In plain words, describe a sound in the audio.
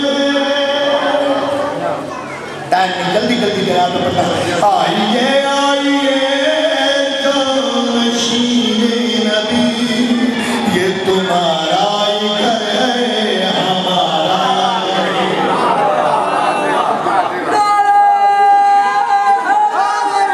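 A middle-aged man chants loudly into a microphone, his voice amplified through loudspeakers in an echoing hall.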